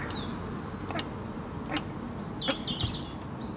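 Small metal parts click and tap as an engine part is handled.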